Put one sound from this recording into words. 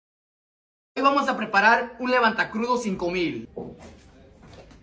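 A young man speaks loudly close by.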